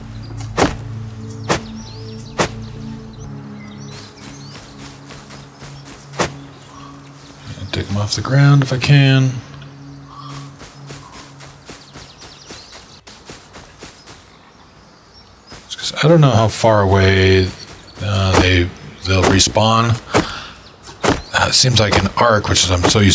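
A stone hatchet thuds against wood in sharp, repeated blows.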